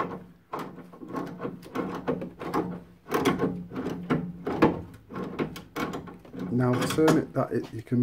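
Plastic test leads rattle and tap against metal parts.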